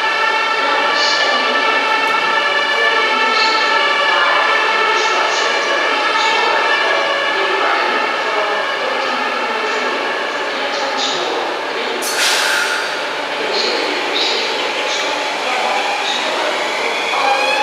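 Train wheels squeal and clatter on the rails.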